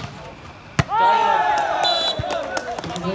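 A group of young men cheer and shout loudly.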